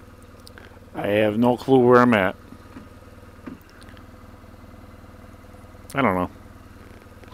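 A motorcycle engine revs up sharply in short bursts.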